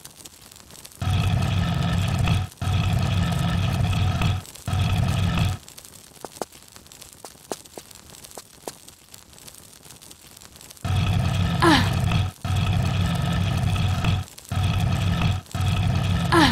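A heavy stone block grinds as it scrapes across a stone floor.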